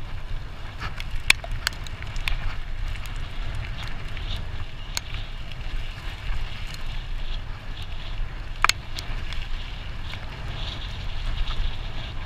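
Bicycle tyres crunch and rattle over rough gravel.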